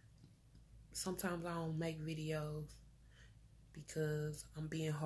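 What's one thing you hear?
A woman speaks calmly, close up.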